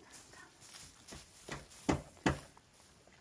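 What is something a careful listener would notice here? A woman sweeps dirt ground with a straw broom.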